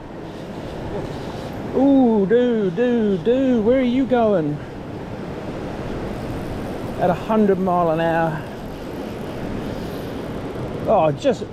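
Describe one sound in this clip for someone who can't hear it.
A river rushes steadily over rocks nearby.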